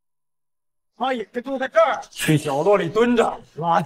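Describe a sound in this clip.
A young man shouts angrily and commandingly.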